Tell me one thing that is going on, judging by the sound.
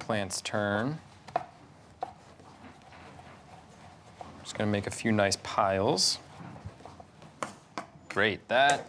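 A knife chops on a wooden board with sharp knocks.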